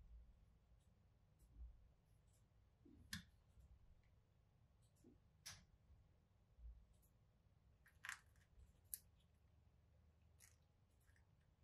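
Small clicks and taps come from handling a case in the hands.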